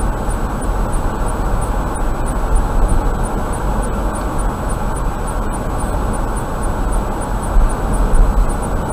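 A car drives steadily along a highway, with a constant low rumble of road and engine noise.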